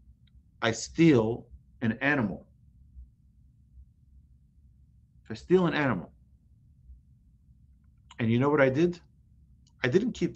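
A man speaks calmly in short phrases with pauses, close to a microphone.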